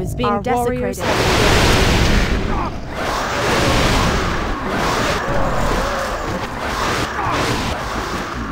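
Spell blasts and combat effects crackle and roar loudly.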